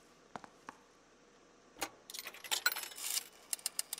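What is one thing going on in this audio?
A telephone receiver clicks as it is lifted.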